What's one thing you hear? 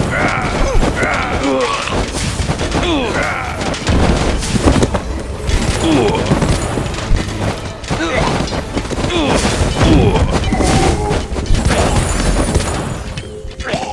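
Game battle sounds clash and thud with swords and impacts.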